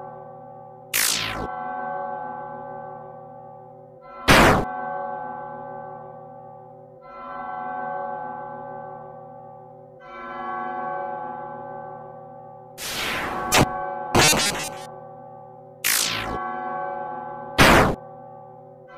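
A blade slashes through the air with a sharp swish.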